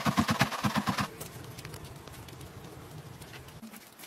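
A grater rasps against an onion.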